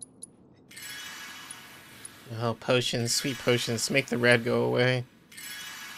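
A sword swishes and strikes in quick blows.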